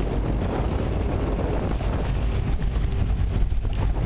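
A personal watercraft engine drones while riding across the water.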